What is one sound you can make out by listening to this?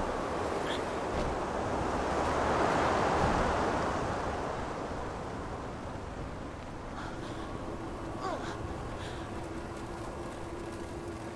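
Water rushes and churns loudly, then settles into a low underwater rumble.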